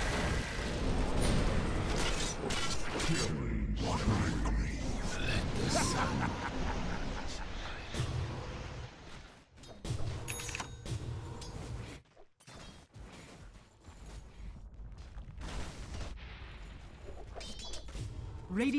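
Weapons clash and strike in a video game battle.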